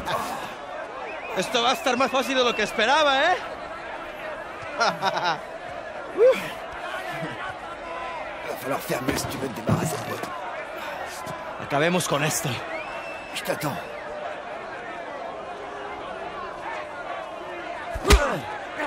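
A crowd of men shouts and jeers loudly outdoors.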